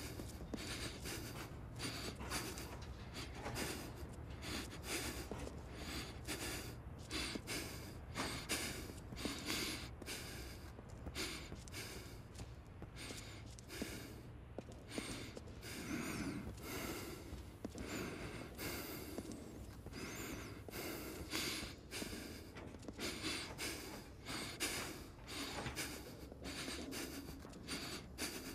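Footsteps crunch steadily on gritty ground.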